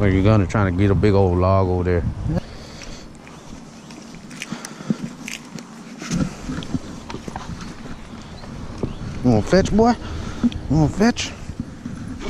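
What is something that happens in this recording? A man talks close by in an animated voice.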